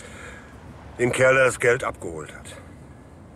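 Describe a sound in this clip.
An elderly man answers in a low, calm voice close by.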